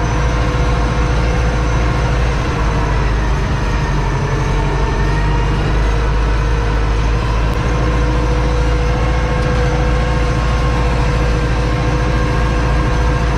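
A tractor engine drones loudly and steadily from close by inside the cab.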